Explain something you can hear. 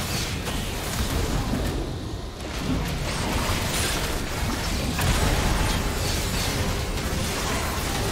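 Magic blasts and clashing weapons crackle and boom in a fast battle.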